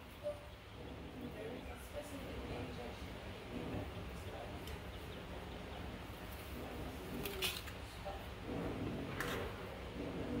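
Metal utensils clink against a foil tray.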